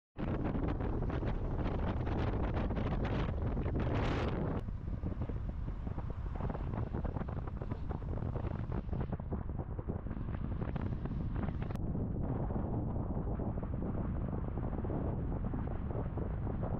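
Wind roars and buffets loudly outdoors.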